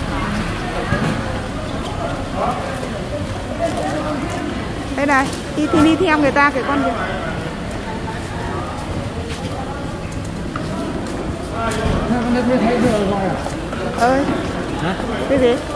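Several people chatter nearby in a busy, echoing hall.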